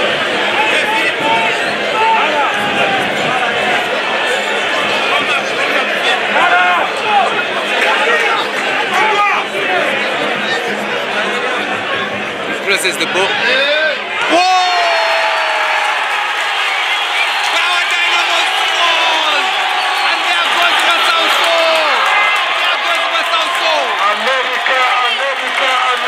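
A large crowd cheers, whistles and shouts outdoors.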